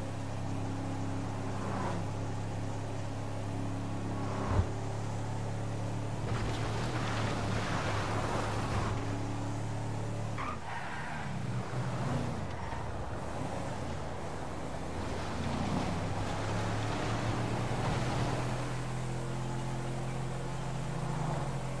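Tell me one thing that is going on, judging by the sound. A pickup truck engine hums steadily as it drives along a road.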